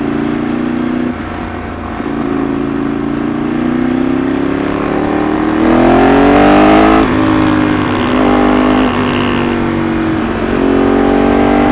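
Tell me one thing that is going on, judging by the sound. A Ducati 848 V-twin sportbike engine accelerates and shifts up through the gears.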